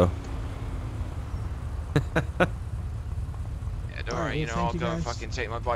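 A motorcycle engine idles nearby with a low rumble.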